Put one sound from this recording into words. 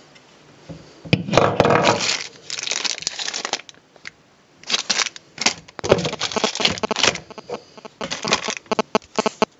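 Cardboard and plastic packaging rustle and crinkle close by.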